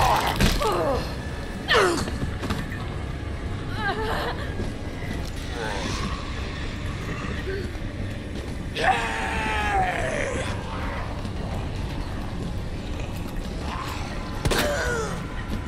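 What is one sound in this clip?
Zombies groan and moan close by.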